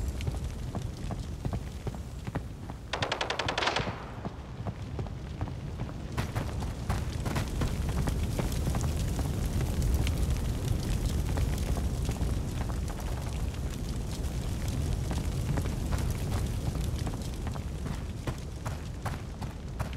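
Footsteps crunch steadily on gravel and rubble.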